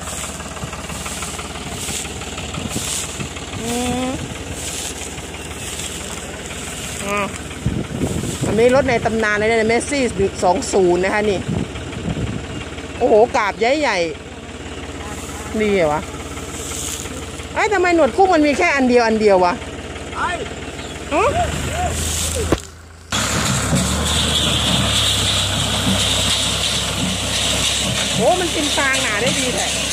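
A baler clatters and rustles as it picks up dry straw.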